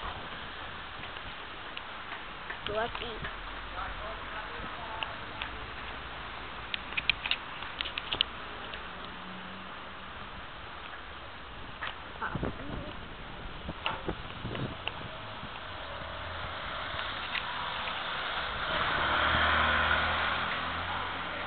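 Street traffic hums steadily outdoors.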